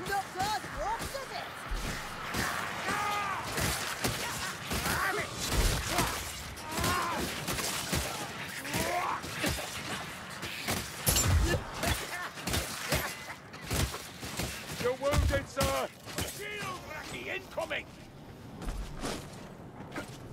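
Guns fire with loud bangs.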